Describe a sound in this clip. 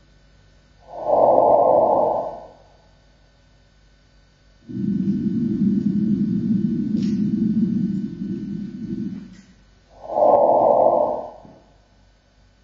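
A musical instrument plays short, swelling higher notes.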